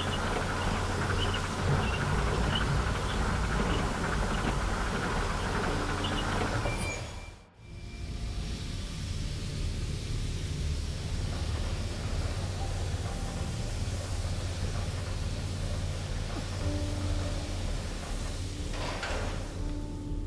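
Steam jets hiss loudly.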